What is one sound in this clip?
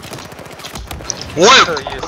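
Gunfire rattles close by.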